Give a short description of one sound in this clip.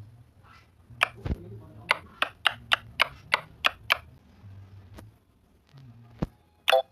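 Short electronic clicks sound as buttons are tapped in a game.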